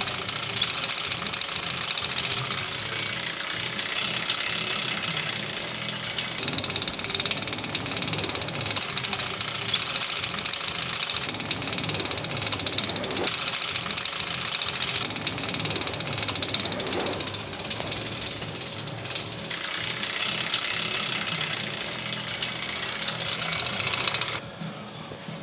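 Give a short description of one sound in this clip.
A bicycle chain rattles and whirs over a spinning hub.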